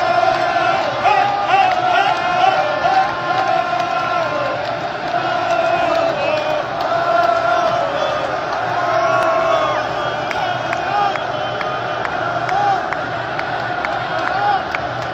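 Men nearby clap their hands in rhythm.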